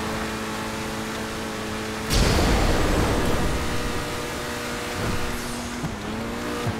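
A car engine hums steadily.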